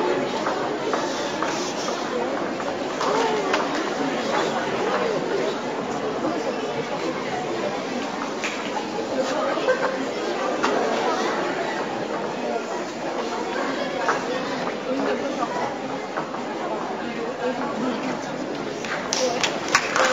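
Shoes tap on a wooden stage.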